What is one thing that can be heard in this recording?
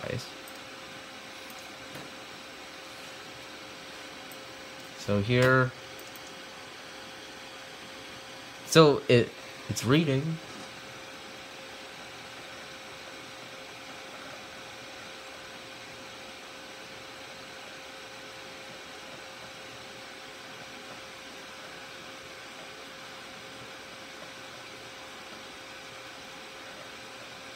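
A computer hums steadily nearby.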